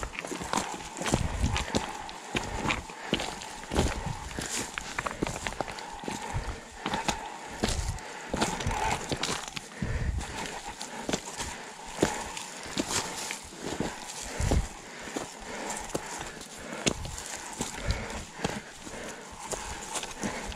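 A bicycle frame and chain clatter and knock over bumps.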